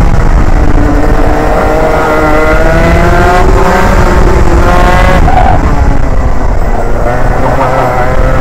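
A two-stroke 125cc racing kart engine screams, its pitch climbing on the straights and dropping into the corners.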